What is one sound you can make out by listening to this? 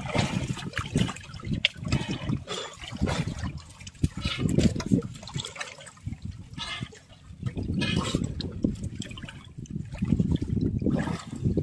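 Fish flap and splash in the water.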